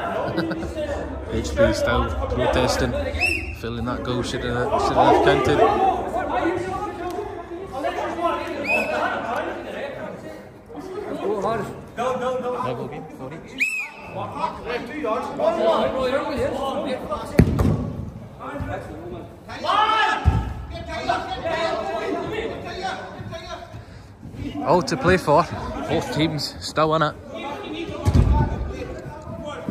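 Men talk and call out to each other across a large echoing hall.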